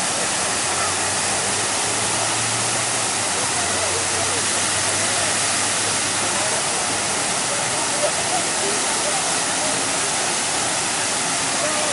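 A fountain splashes steadily nearby.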